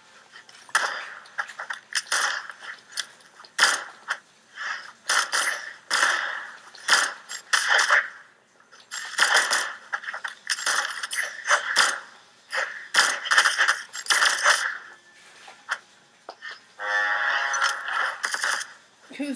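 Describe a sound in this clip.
Cartoon weapons swish and strike in quick bursts.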